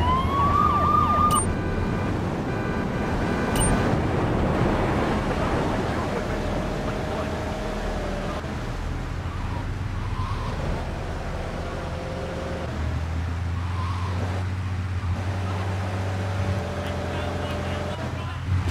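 A car engine hums steadily as a car drives along.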